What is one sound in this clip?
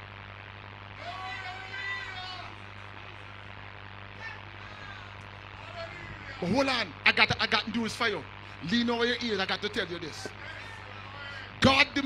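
An elderly man preaches into a microphone with rising passion, heard over loudspeakers.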